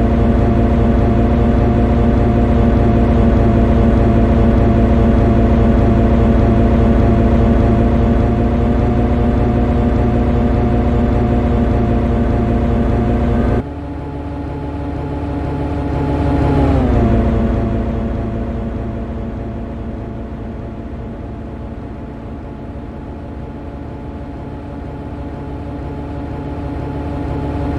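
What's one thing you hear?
Train wheels rumble over the rails.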